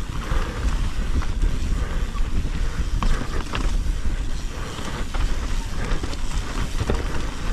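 A bike's frame and chain rattle and clack over bumps.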